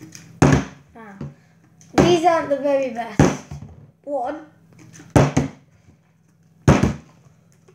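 A plastic bottle flips and thuds down onto a table.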